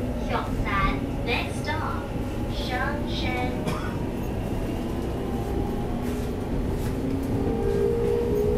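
An electric commuter train rumbles along the track at speed, heard from inside the carriage.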